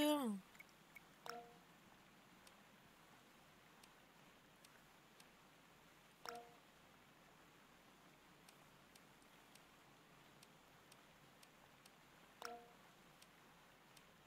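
Soft menu ticks click as a cursor moves.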